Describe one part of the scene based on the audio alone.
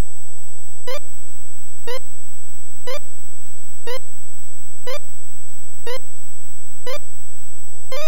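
An electronic timer beeps once every second.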